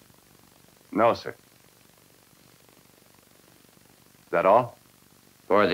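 A man speaks quietly and haltingly in short bursts.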